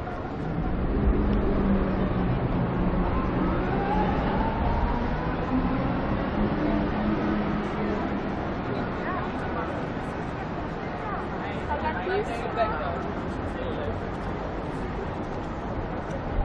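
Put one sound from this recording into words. A distant crowd murmurs in an open square.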